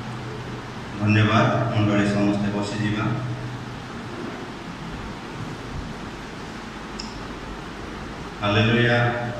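A man speaks into a microphone over a loudspeaker in an echoing hall.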